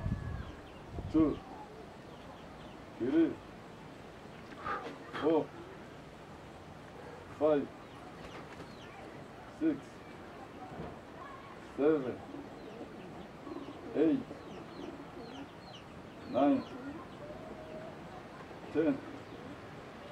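A young man grunts loudly with each lift, close by.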